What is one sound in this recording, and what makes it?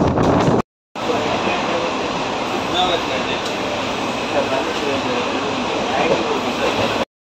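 A train hums steadily from inside a carriage.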